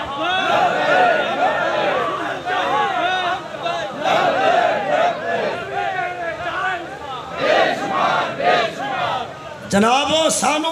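A crowd of men chants loudly in unison, echoing through a loudspeaker.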